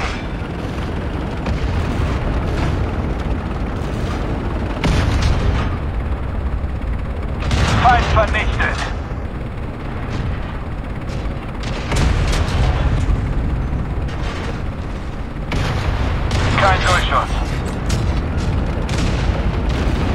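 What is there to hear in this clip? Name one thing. A tank engine rumbles low and steadily.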